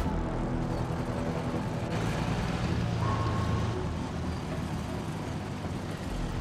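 A tank engine rumbles and clanks steadily close by.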